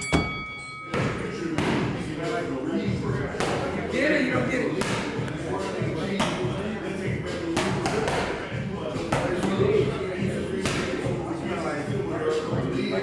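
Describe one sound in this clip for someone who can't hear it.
Gloved punches thud rapidly against padded mitts.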